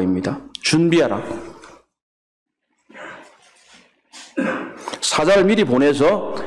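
A middle-aged man preaches with emphasis into a microphone, pausing between phrases.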